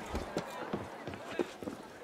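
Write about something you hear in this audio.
Footsteps thud on a tiled roof.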